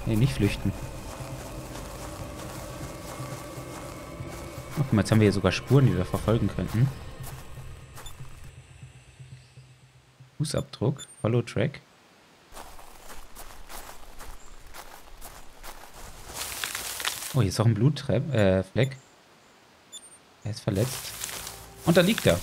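Footsteps rustle through dense ferns.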